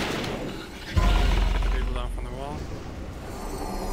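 A deep boom bursts out and slowly rumbles away.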